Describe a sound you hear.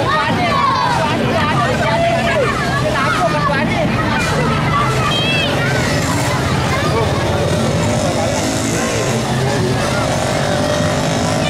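Children chatter and call out excitedly close by outdoors.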